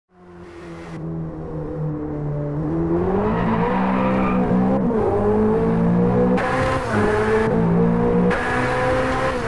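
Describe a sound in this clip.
A sports car engine revs hard and rises in pitch as the car speeds up, shifting gears.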